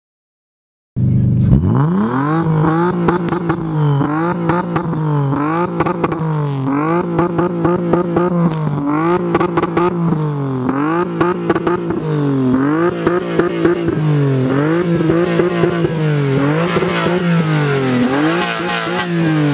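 A car engine starts up and revs hard again and again.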